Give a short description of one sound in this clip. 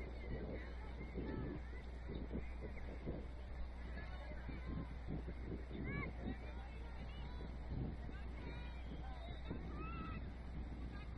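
Young women shout and call to each other across an open field outdoors.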